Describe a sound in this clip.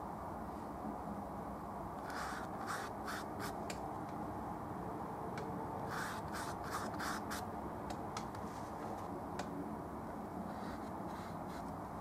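A paintbrush dabs and scrapes against canvas.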